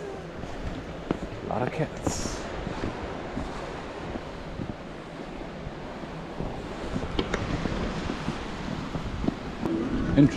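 Waves wash gently against rocks in the distance.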